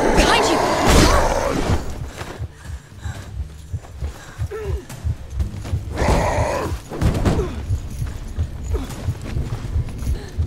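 Blades clash and swish in a fight.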